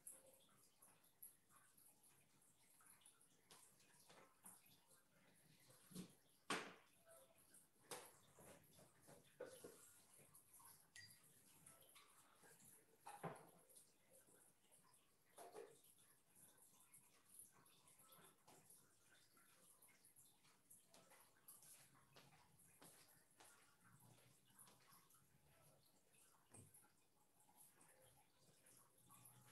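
A brush dabs and strokes softly on paper.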